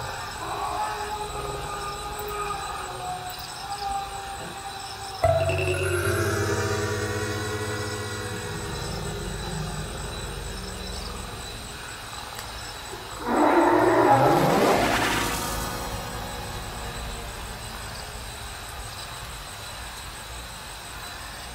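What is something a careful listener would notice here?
A plucked zither plays slow, ringing notes.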